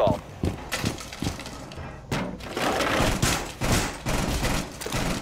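Heavy thumps and rustling gear sound as a figure climbs up through a hatch.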